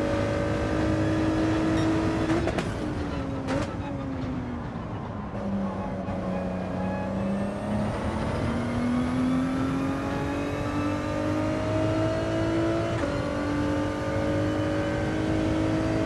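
A racing car engine drones loudly, dropping as the car slows and rising again as it speeds up.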